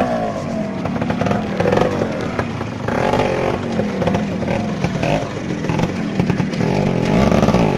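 A dirt bike engine revs and sputters close by.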